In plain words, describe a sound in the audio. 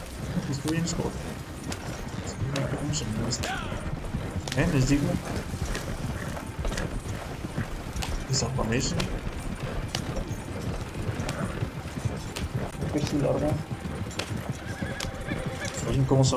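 Horses' hooves clop on the dirt.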